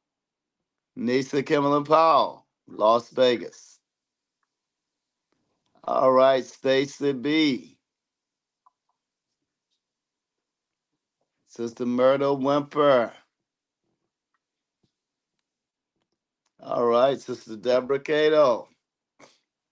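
A man speaks calmly into a close microphone, with pauses between phrases.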